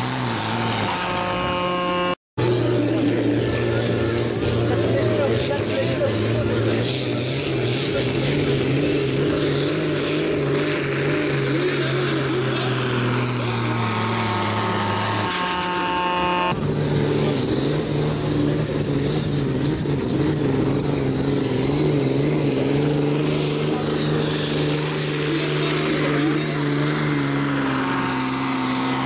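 A pulling tractor's diesel engine roars under full load.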